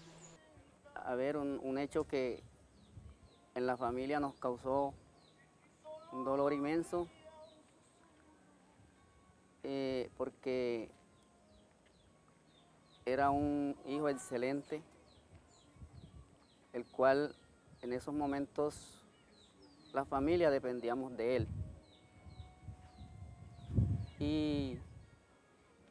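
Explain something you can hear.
An older man speaks calmly and close by, in short phrases with pauses.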